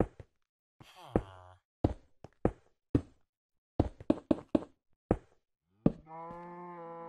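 Blocks knock sharply as they are broken and placed.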